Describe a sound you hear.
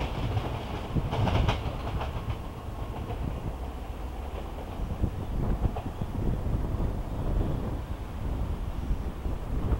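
A train rumbles far off as it approaches.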